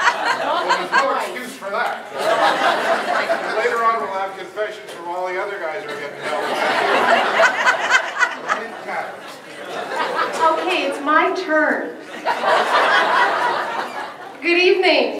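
An elderly man speaks with animation into a microphone, heard through a loudspeaker in an echoing hall.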